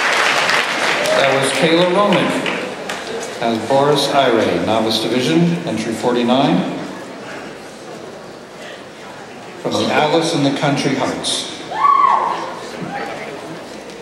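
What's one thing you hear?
A man speaks through a microphone in a large hall.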